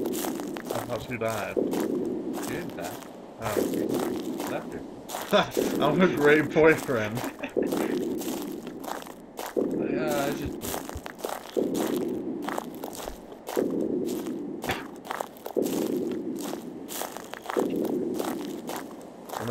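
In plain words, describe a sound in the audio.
Footsteps fall on a dirt path.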